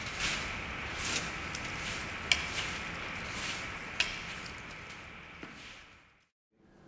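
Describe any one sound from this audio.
A broom sweeps across a hard floor with brushing swishes.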